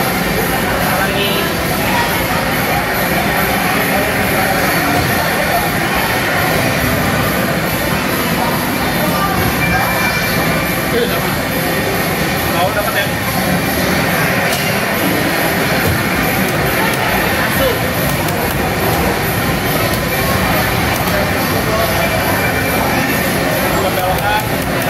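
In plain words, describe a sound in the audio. Racing game engines roar loudly through loudspeakers.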